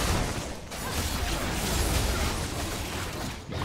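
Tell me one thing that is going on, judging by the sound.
Magic spells whoosh and crackle in a fight.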